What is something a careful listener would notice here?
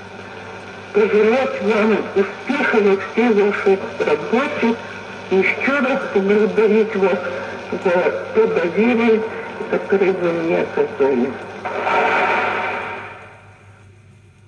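Music plays from a record on a turntable.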